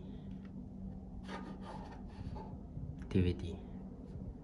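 A disc clicks and scrapes as a hand lifts it from a drive tray.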